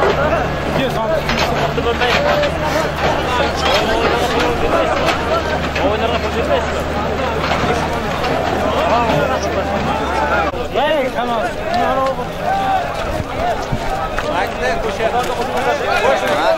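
A large crowd of men shouts and calls out outdoors.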